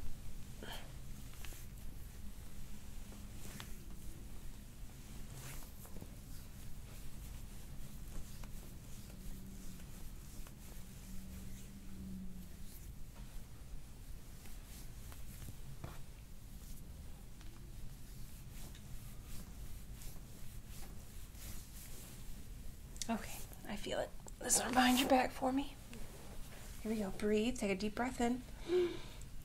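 Hands softly rub and press on bare skin close by.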